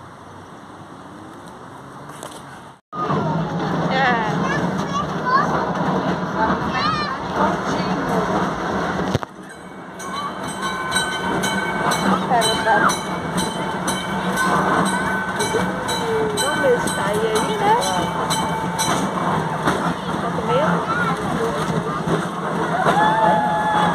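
A small open tram rumbles along at a steady pace.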